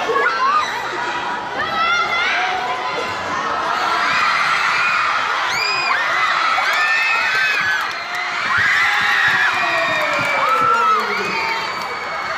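A large crowd of young people cheers and screams loudly in an echoing hall.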